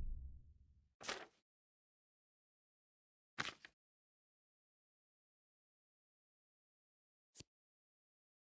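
Soft menu clicks tick as items are selected.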